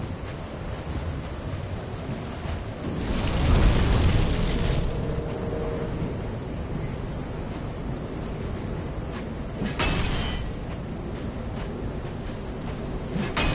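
Metal weapons clash and strike in a sword fight.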